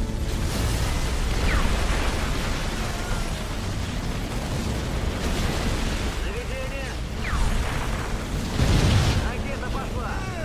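Explosions boom now and then.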